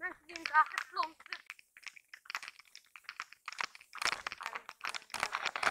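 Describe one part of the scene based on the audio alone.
Footsteps crunch on dry ground and stones.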